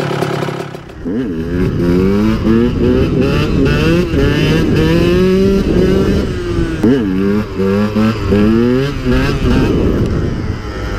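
A dirt bike engine revs hard, rising and dropping in pitch as it shifts gears.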